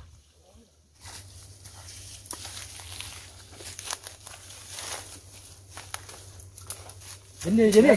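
Twigs and leaves crackle underfoot in brush.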